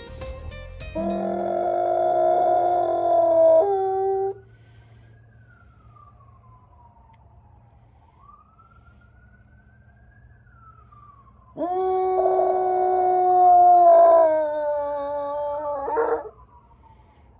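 A dog howls loudly nearby in long, wavering notes.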